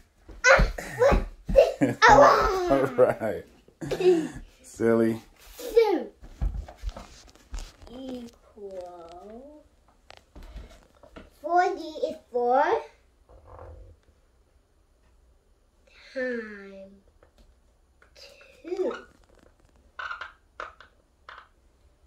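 A toddler babbles and talks excitedly up close.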